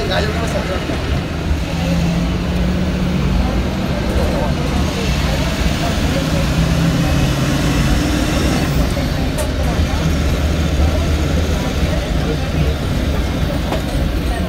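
A bus engine rumbles low and steady.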